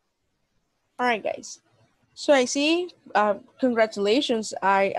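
A young woman talks with animation over an online call.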